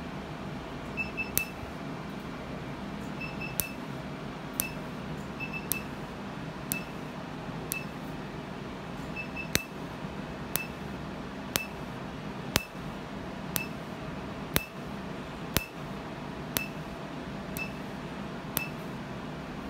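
An electric device clicks sharply at a steady pace.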